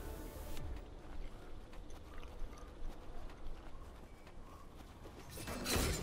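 Quick footsteps patter on the ground.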